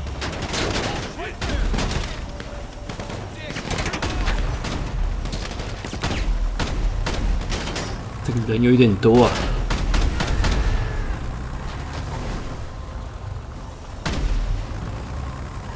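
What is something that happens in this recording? A heavy armoured vehicle's engine rumbles steadily as it drives over rough ground.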